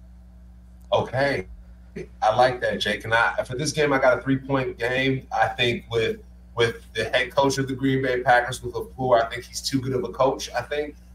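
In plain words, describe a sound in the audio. A man speaks with animation into a microphone, heard over an online call.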